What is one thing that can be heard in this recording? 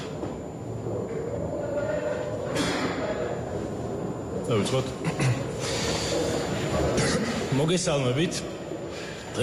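A middle-aged man speaks at a microphone in an echoing room.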